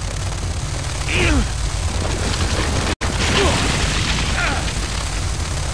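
A creature screeches and snarls close by.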